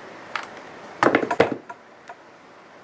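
A glass jar clinks and knocks as it is handled.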